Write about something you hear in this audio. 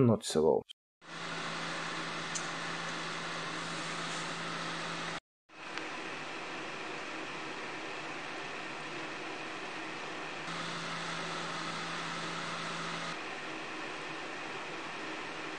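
Computer cooling fans whir steadily.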